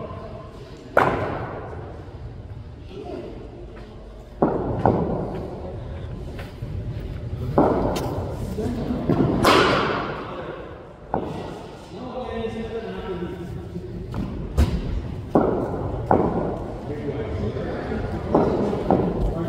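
A cricket bat strikes a ball with a sharp crack, echoing in a large hall.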